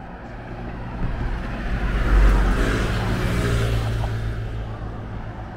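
A motorbike rushes past close by.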